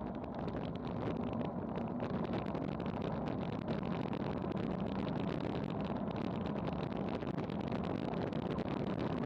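Wind rushes loudly past a fast-moving bicycle.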